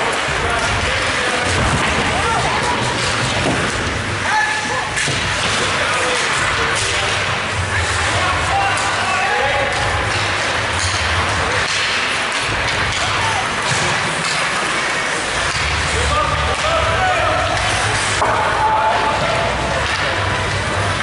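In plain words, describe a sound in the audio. Ice hockey skates scrape and carve across the ice in an echoing arena.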